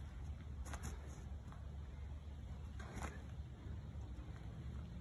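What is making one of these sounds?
Sneakers step quickly on grass.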